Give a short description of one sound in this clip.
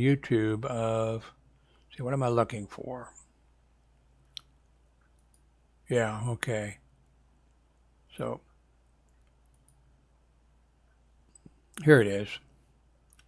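A man speaks calmly and close to a headset microphone, in short bursts.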